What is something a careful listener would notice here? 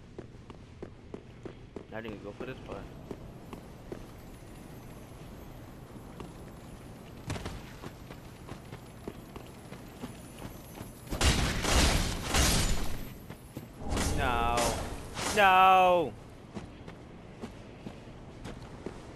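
Armored footsteps clink and thud on stone.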